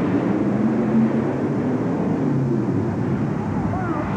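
Metal crunches as a truck's huge tyres roll over crushed cars.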